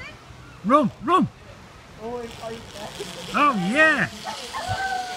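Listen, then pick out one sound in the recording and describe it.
A child whoops excitedly nearby.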